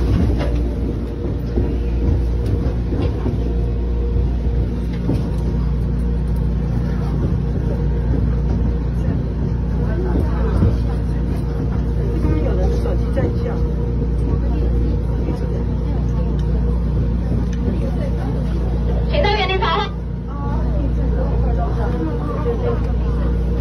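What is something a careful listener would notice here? A train rumbles along steadily.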